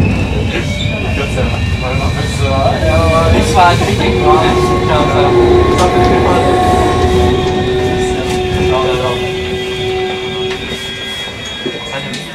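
A crowd of people murmurs, heard faintly through glass.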